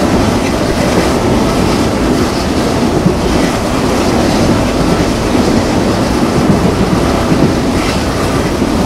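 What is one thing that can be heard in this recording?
A train rumbles and rattles loudly along the tracks.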